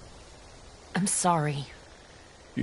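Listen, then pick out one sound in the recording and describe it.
A young woman speaks in a worried voice.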